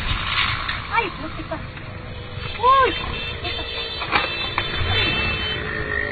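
Motorcycles crash and scrape along the road.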